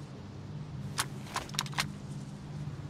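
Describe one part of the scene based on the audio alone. Metal gear clicks and rattles as a rifle is handled.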